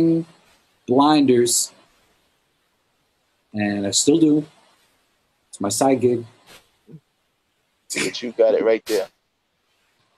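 A man speaks with animation over an online call, in short bursts.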